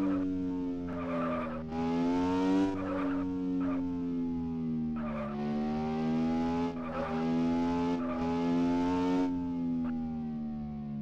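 A buggy's engine hums steadily, rising and falling in pitch as it drives.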